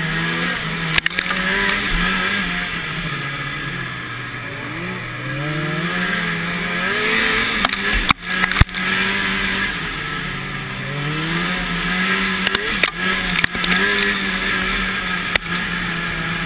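A snowmobile thumps over bumps in the snow.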